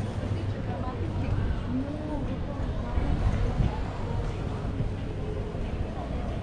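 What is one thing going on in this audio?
A crowd of adults murmurs in conversation at a distance outdoors.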